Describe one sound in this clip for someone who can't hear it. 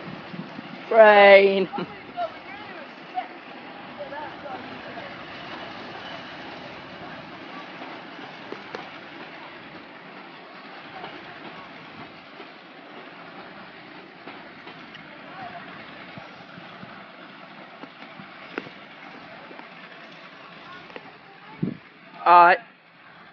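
A steam locomotive's whistle blows loudly in short blasts.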